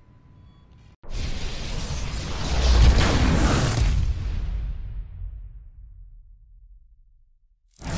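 A crackling burst of energy roars and swells, then slowly fades.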